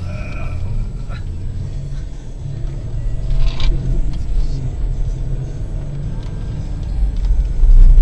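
A car engine rumbles steadily from inside.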